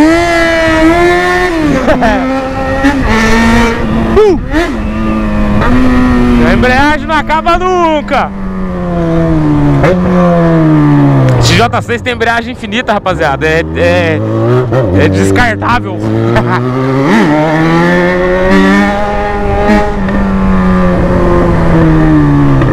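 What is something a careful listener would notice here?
A motorcycle engine roars close by, revving up and down as the gears shift.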